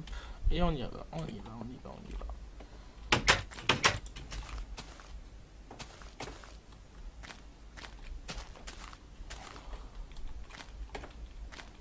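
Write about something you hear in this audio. Footsteps tread on stone and grass.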